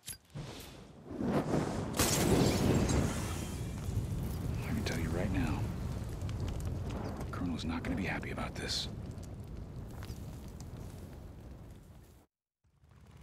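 Flames burst up and roar loudly.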